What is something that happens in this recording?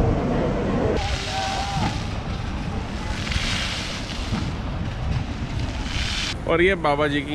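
A fountain sprays and splashes water.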